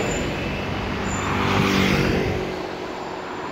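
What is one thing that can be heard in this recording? A motor scooter buzzes past.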